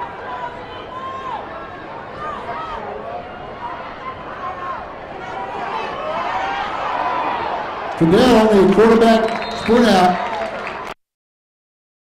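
A crowd cheers in a large outdoor stadium.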